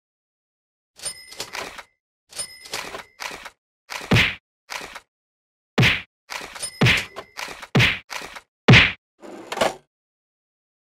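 Short game menu chimes click in quick succession.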